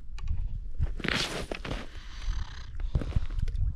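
A fishing reel clicks and whirs as line is wound in.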